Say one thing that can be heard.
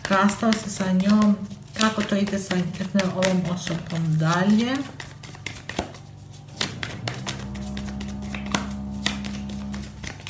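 Cards flick and rustle as a deck is shuffled by hand.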